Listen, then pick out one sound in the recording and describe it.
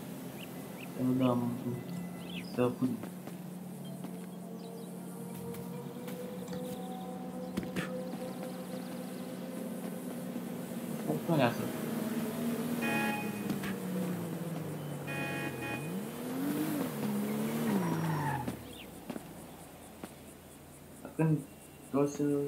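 A young man speaks briefly close to a microphone.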